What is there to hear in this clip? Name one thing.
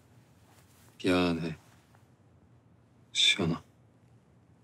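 A young woman speaks softly in two short phrases, close by.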